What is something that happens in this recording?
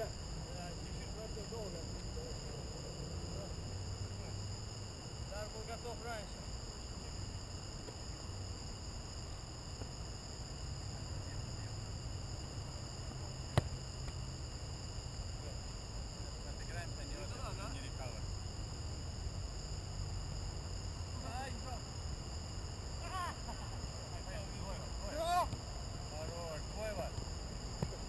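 Young men shout and call out across an open field in the distance.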